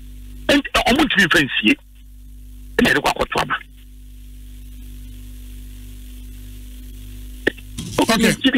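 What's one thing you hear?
A young man speaks calmly and closely into a microphone, in short bursts.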